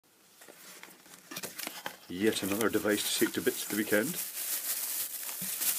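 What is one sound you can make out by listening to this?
Cardboard flaps scrape and rub as a small box is opened.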